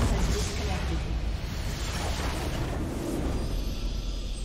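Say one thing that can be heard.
Game spell blasts and clashes crackle loudly in a battle.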